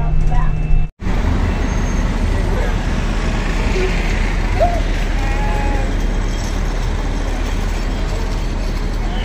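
A crowd of women and men chatter outdoors.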